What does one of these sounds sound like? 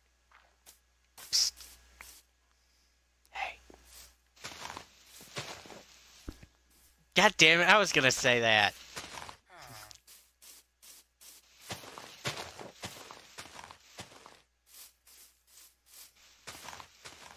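Leafy blocks break with soft, crunchy rustles, over and over.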